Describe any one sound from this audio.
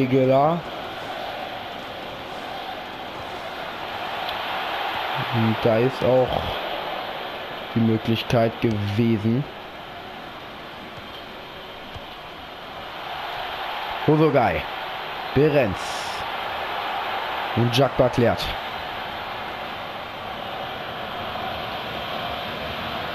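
A large stadium crowd roars steadily throughout.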